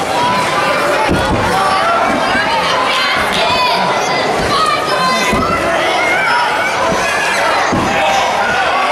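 Bodies thud on a wrestling ring mat.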